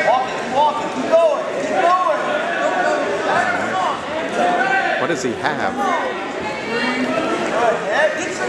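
A crowd of spectators shouts and cheers loudly in an echoing gym.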